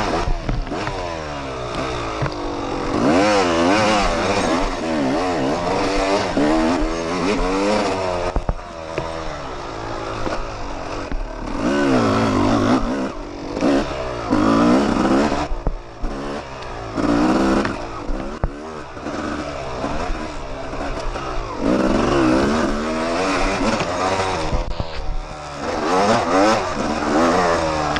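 A dirt bike engine revs up and down loudly close by.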